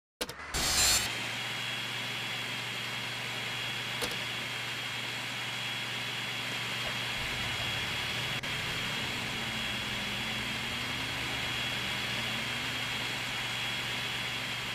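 Spinning circular saws whir steadily.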